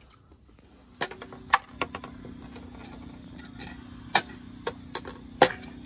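Plastic game pieces clatter and click as they drop into a frame.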